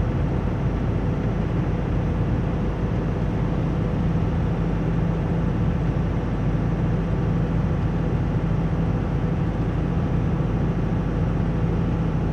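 Rain patters against a windshield.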